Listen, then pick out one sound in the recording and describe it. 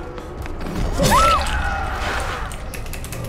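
A heavy blade slashes and strikes with a wet thud.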